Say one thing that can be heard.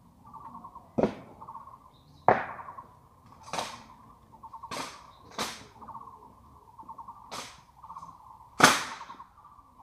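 Rifles thump and clack sharply as honour guards drill, in sudden single knocks every second or so.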